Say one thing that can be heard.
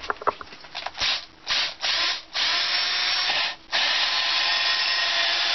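A power drill whirs as it bores into wood.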